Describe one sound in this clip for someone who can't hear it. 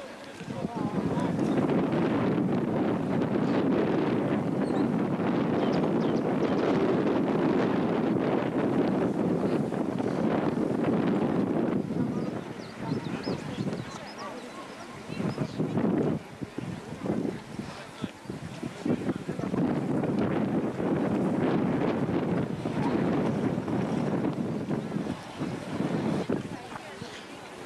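A crowd of people talk and call out nearby.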